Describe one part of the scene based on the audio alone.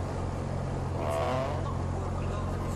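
A wooden crate lid creaks open.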